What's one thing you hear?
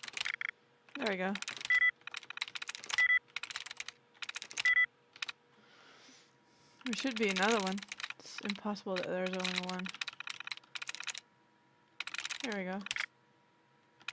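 A computer terminal gives short electronic beeps.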